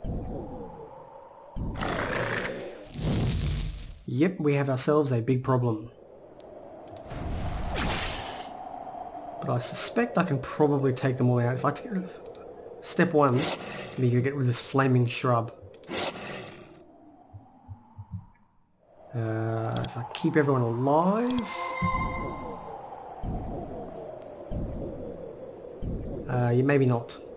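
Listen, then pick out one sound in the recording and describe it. Magic spells crackle and shimmer.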